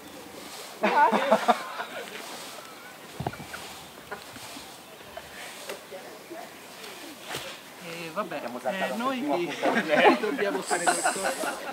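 Several people talk and call out outdoors, at a distance.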